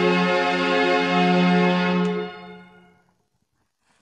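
A young woman hums a soft tune.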